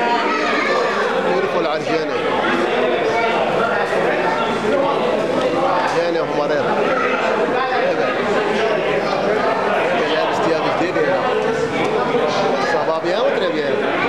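Many people chatter and talk at once in a busy indoor hall.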